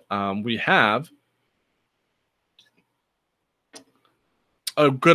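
A young man speaks calmly through a computer microphone, as in an online call.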